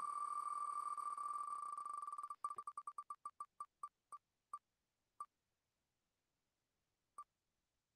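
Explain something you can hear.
A spinning prize wheel clicks rapidly, the ticks slowing down until it stops.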